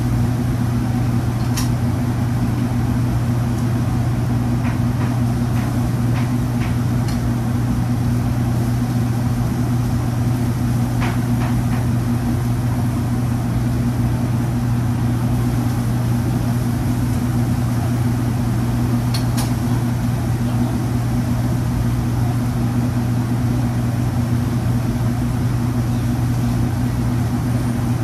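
An exhaust hood hums loudly and steadily.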